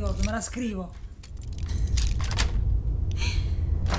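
Metal lock picks scrape and click inside a lock.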